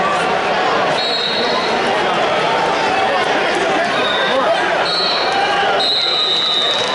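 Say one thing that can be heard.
A referee's whistle blows in short shrill blasts.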